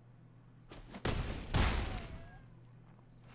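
A game sound effect whooshes and rumbles.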